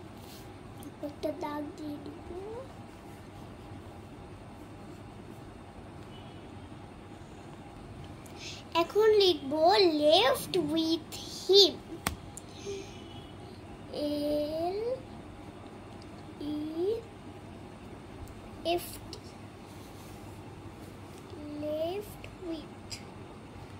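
A young girl speaks slowly and close by, in short phrases.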